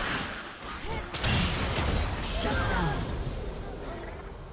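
Magic blasts crash and whoosh in a fight.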